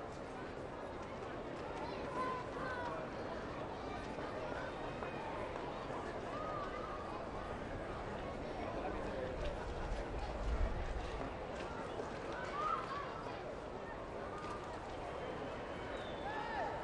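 A stadium crowd murmurs steadily in the open air.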